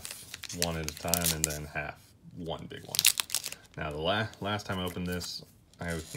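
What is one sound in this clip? A foil pack tears open.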